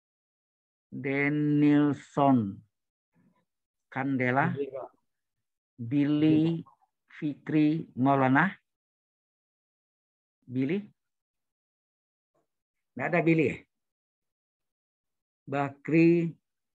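A man speaks calmly in short phrases with pauses, heard through an online call.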